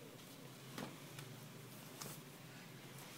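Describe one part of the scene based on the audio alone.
A plastic doll's feet tap lightly on a hard tabletop.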